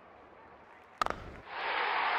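A bat strikes a ball with a sharp crack.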